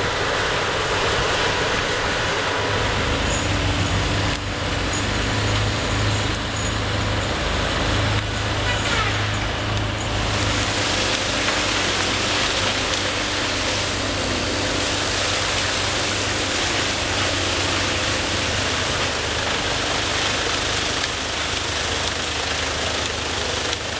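A heavy diesel engine roars steadily.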